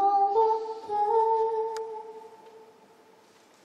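A young woman sings a held note into a microphone, then falls silent.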